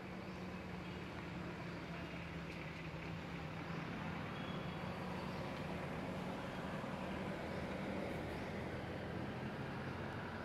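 Leaves rustle softly in a breeze.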